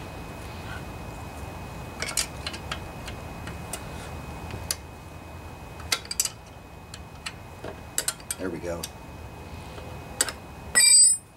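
A ratchet wrench clicks as it turns a nut.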